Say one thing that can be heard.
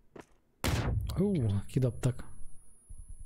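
A man shouts with animation into a microphone.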